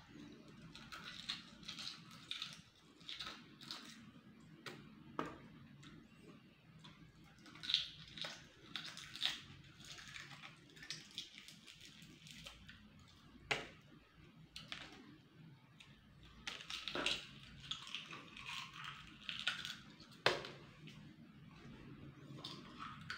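A man chews food loudly and wetly, close to the microphone.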